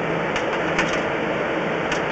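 Water trickles and splashes in a pipe.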